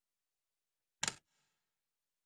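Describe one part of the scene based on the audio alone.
A short electronic click sounds as a menu changes.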